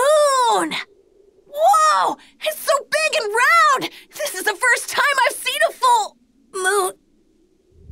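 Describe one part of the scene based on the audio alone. A young boy speaks with excitement.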